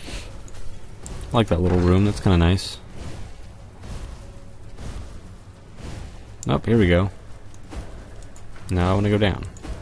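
Ice spells crackle and shatter in quick bursts.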